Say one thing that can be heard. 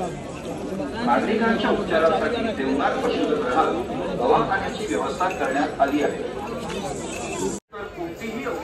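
A crowd of men talk and shout over one another close by.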